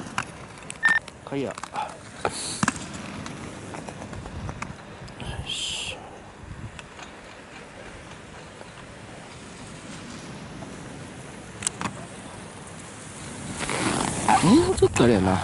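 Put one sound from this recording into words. Skis scrape and hiss across hard snow.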